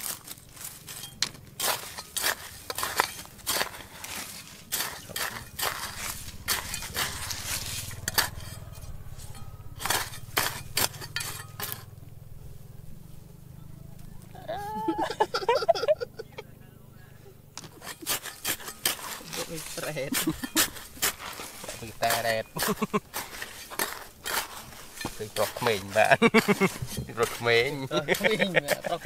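A metal trowel scrapes and digs into loose, stony ground.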